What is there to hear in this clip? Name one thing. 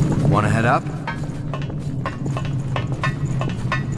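Hands and feet clank on a metal ladder rung by rung.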